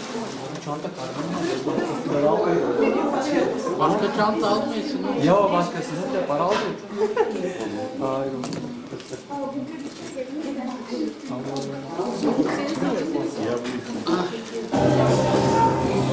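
Several men and a woman chat and laugh nearby.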